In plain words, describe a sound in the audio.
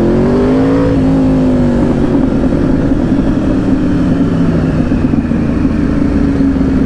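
A sport motorcycle engine hums steadily up close as it rides along.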